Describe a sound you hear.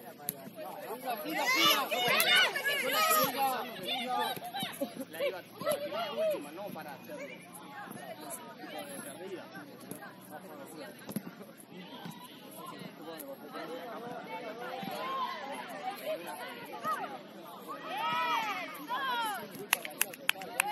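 A soccer ball is kicked with dull thumps.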